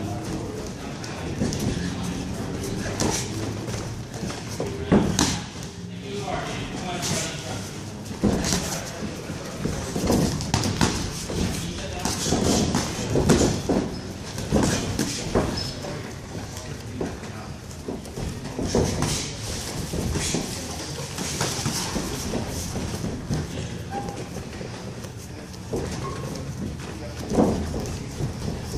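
Boxing gloves thump in sparring punches.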